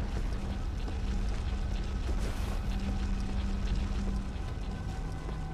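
Footsteps scuff on stone at a walking pace.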